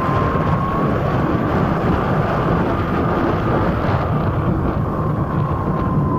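Wind rumbles and buffets steadily.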